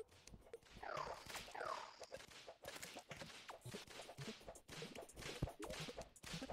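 Game sound effects of spells and hits chime and pop rapidly.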